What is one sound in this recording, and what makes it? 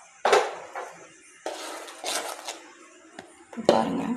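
Liquid pours and splashes from a ladle into a metal pan.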